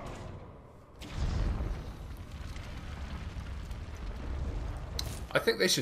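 Flame jets roar and burst in a fighting game.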